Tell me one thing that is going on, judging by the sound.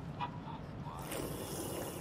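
A girl slurps loudly through a straw.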